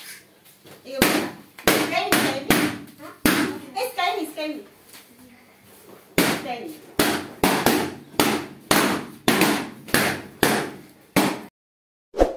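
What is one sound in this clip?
Balloons pop loudly, one after another.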